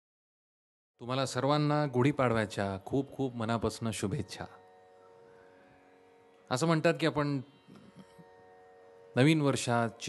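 A man sings with sweeping, ornamented phrases close to a microphone.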